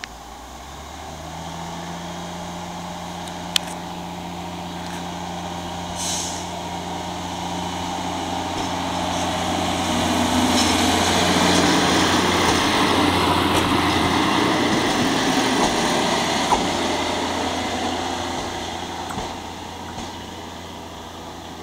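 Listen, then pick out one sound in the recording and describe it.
A diesel railcar engine hums steadily and grows louder as the railcar approaches.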